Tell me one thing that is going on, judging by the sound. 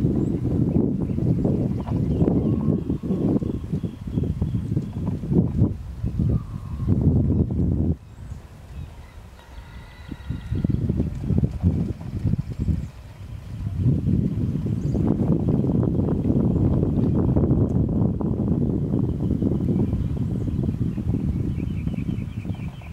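A horse's hooves thud softly on sand as it trots.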